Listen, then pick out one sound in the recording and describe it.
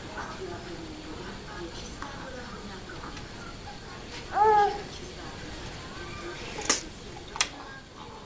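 A sleeping baby breathes softly.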